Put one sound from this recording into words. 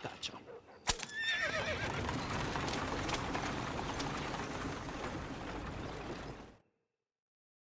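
A horse-drawn carriage rolls away over cobblestones.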